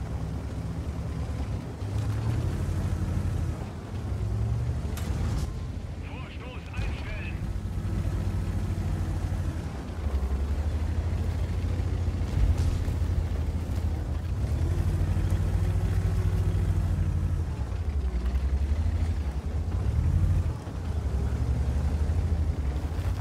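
A heavy tank engine rumbles steadily, rising and falling.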